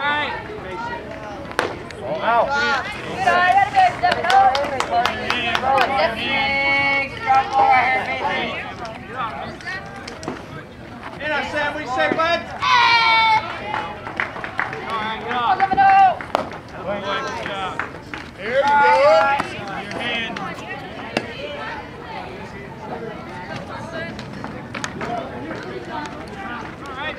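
Young players and people nearby shout and cheer outdoors.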